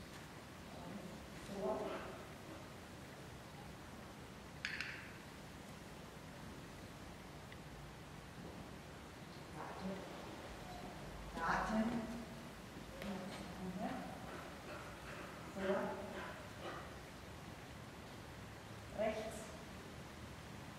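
A woman calls out short commands to a dog in a large echoing hall.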